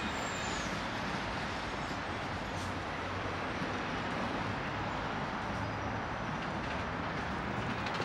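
Steady traffic rumbles along a busy road nearby.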